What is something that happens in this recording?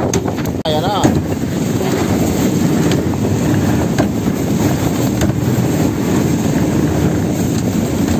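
Sea water splashes against the hull.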